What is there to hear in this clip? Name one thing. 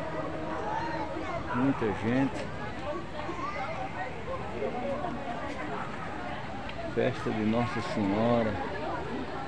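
A large crowd murmurs and chatters outdoors.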